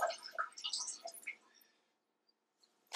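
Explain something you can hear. Liquid trickles and splashes into a toilet bowl.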